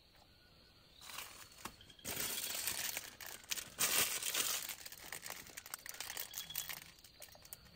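A plastic sheet rustles and crinkles.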